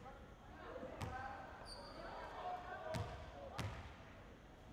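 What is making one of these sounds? A basketball bounces on a hard indoor court, echoing.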